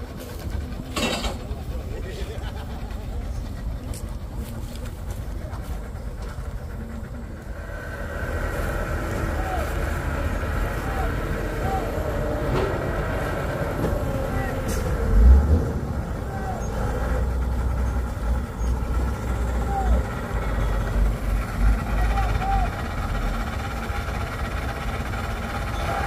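Wind buffets and rumbles outdoors.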